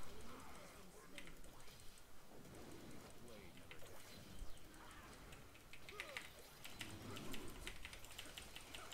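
Video game spell effects zap and crackle during a fight.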